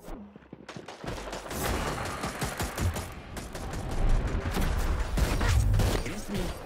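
A video game gun fires in rapid bursts.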